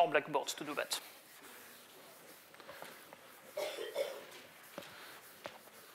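A blackboard eraser rubs across a board.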